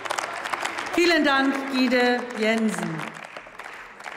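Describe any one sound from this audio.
An elderly woman speaks through a microphone.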